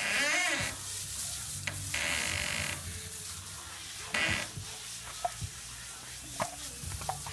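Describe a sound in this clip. Water sprays from a hose in a steady hiss.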